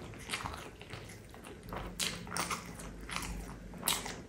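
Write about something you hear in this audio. Sauce squelches as fried chicken is dipped into a bowl.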